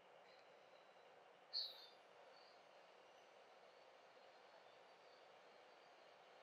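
Fingertips gently rub cream over the skin of a face.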